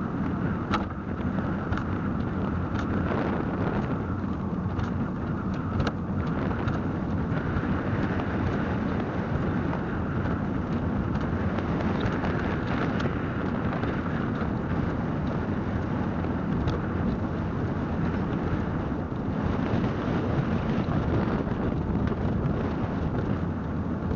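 A small toy car's motor whirs steadily as the car rolls along a road.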